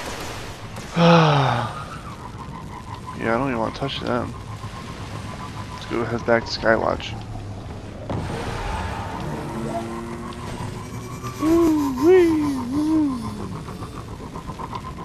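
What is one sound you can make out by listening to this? A hover bike's engine hums and whines as it speeds along.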